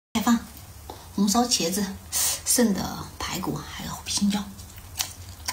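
A young woman speaks softly and close to a microphone.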